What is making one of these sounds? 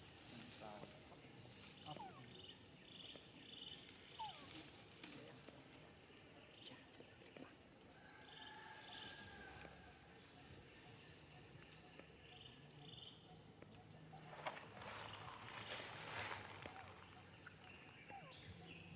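A young macaque sucks and slurps milk from a bottle.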